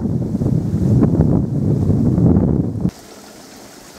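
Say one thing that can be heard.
Wind gusts loudly outdoors.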